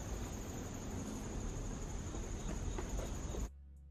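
Footsteps patter softly on a garden path outdoors.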